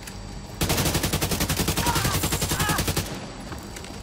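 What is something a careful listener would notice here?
A rifle fires a rapid automatic burst.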